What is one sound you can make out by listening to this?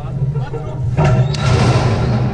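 A metal gate clangs open.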